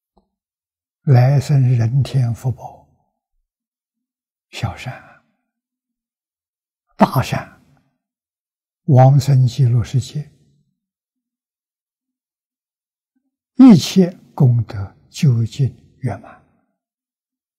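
An elderly man speaks calmly into a close microphone, in slow phrases with long pauses.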